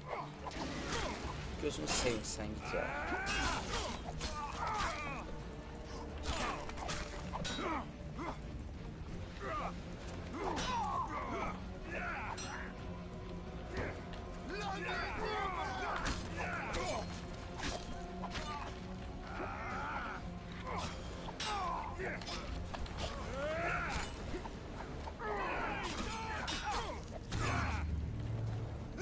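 Swords clash and strike in quick bursts.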